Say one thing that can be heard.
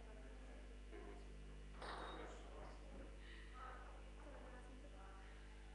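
A young woman talks quietly close by.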